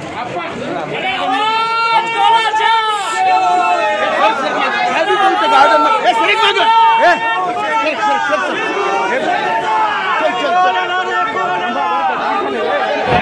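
A crowd of men shouts slogans loudly in unison, close by.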